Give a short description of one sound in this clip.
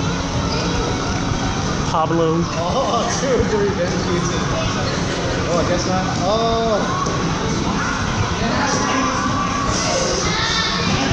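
Bare feet shuffle and thump on a padded mat.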